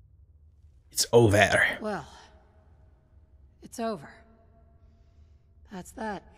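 A young woman speaks calmly and close by, in short phrases.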